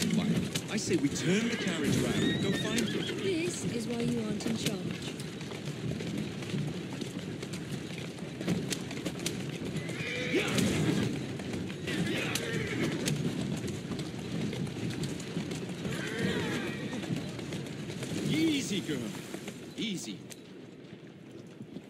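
Horse hooves clop on a paved street.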